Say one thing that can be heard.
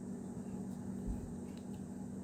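A toy car knocks lightly against a metal tin.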